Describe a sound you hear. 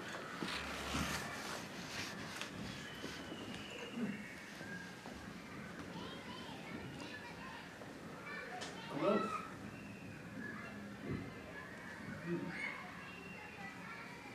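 A man speaks calmly at some distance in a reverberant room.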